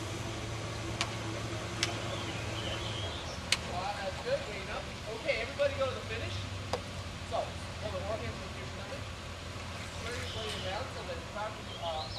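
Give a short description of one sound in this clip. Oars splash and dip in the water.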